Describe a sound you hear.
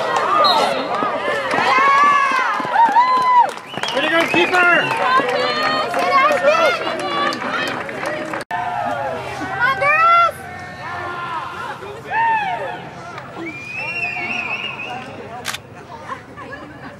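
Young women shout and cheer excitedly outdoors.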